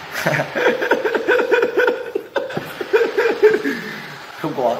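A young man laughs loudly and repeatedly close by.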